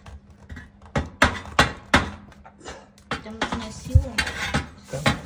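A hand tool knocks and scrapes against wood in sharp bursts.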